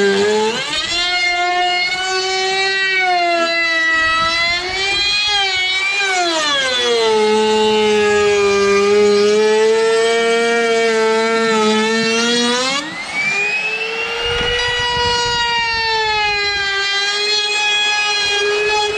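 An electric router whines loudly, its pitch rising and falling as it cuts into wood.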